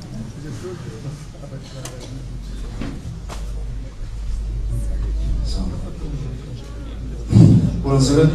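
A crowd murmurs in the background.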